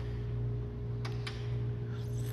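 A car hood latch clicks open.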